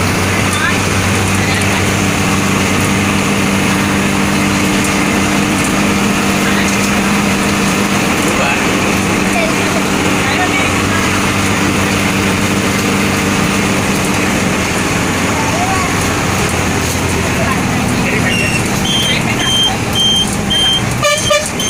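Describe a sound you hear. A bus engine hums and drones steadily from inside the cab.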